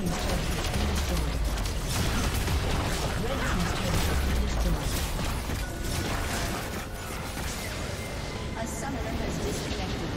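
Spell effects and weapon hits clash rapidly in a video game battle.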